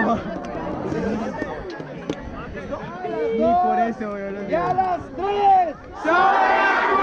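A large crowd of young people chatters and calls out outdoors.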